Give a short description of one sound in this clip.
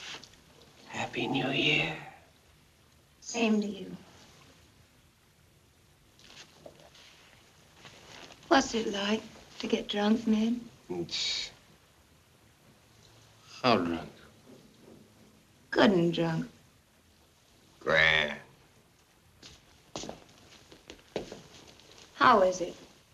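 A woman speaks softly and playfully close by.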